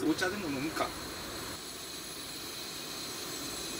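A gas camping stove hisses softly.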